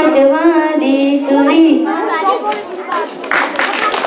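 A young girl sings into a microphone.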